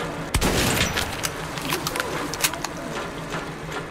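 A gun is reloaded with metallic clicks and clacks.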